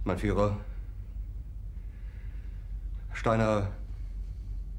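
A middle-aged man speaks quietly and sadly in short phrases.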